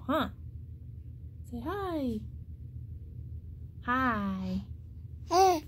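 A young woman talks to a baby in a high, playful voice close by.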